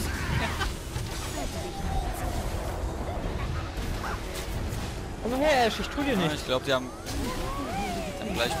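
Magical spells whoosh and crackle during a fight.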